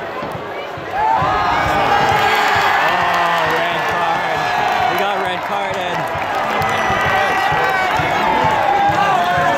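A man close by shouts with excitement.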